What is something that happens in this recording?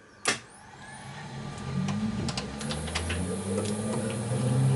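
A lathe motor whirs and spins up.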